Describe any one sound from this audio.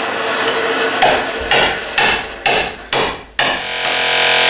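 A hammer taps sharply on a chisel.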